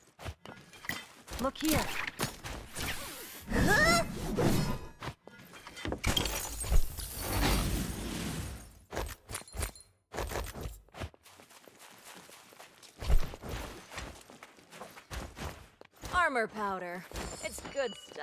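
Footsteps thud on rough ground.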